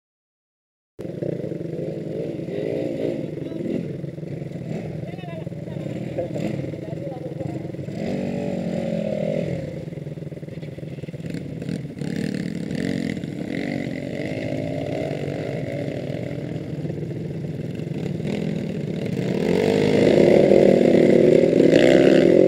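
Dirt bike engines idle and rev close by.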